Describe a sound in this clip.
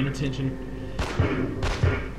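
A pistol fires several shots nearby.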